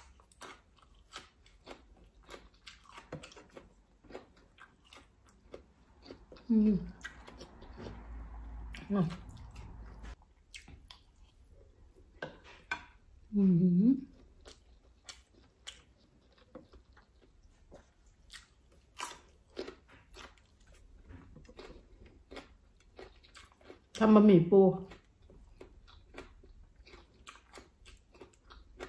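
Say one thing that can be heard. Crab shells crack and food squelches close by.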